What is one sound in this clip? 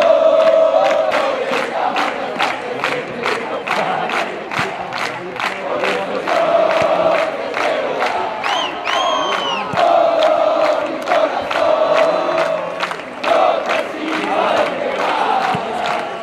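A large crowd chants loudly and steadily outdoors.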